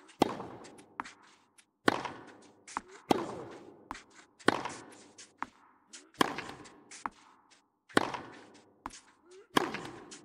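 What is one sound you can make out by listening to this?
Tennis balls bounce on a court.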